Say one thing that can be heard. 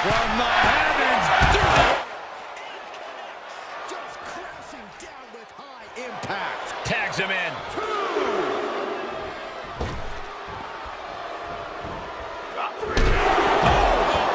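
A crowd roars and cheers loudly.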